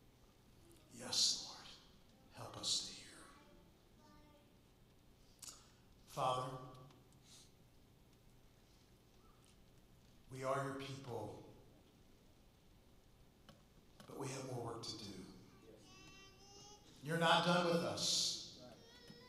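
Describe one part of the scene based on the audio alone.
A man speaks haltingly and emotionally into a microphone, in short bursts with long pauses.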